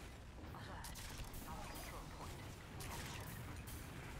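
A crossbow fires with a sharp twang.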